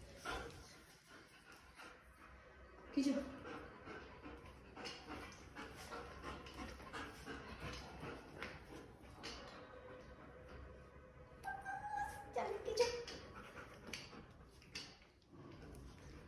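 A dog's paws scrabble and patter on a hard floor.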